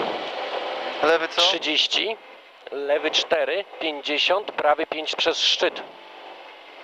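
A man speaks quickly over an intercom headset, reading out notes.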